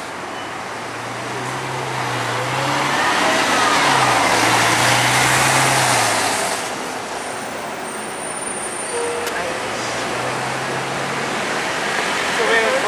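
A bus engine rumbles as the bus pulls away.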